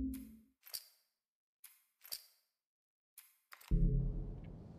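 Short soft menu clicks sound a few times.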